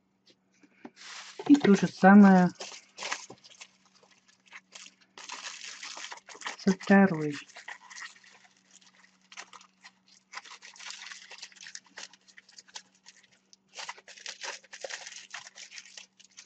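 Aluminium foil crinkles and rustles as hands crumple it.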